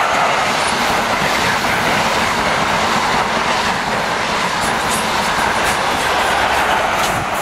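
A passenger train rumbles past on the tracks and roars steadily.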